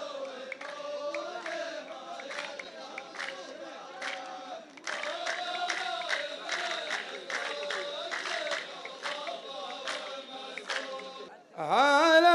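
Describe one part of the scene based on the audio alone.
A line of men claps in rhythm.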